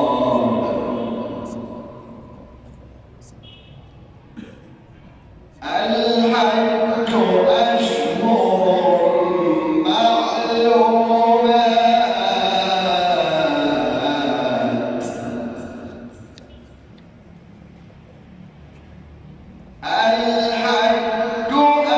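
A man chants in a long, melodic voice through a microphone, with echo, pausing between phrases.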